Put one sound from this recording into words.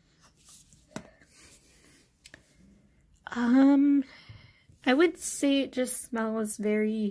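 A plastic bottle bumps and rattles as it is handled.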